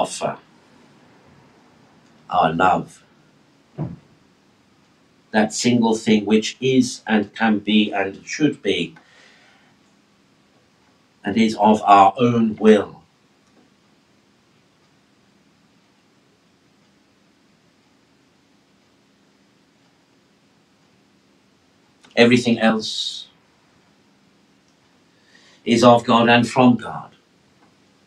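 A man speaks calmly into a nearby microphone, in short phrases with long pauses.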